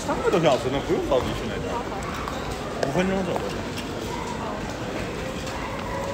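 A luggage trolley rattles as it is pushed.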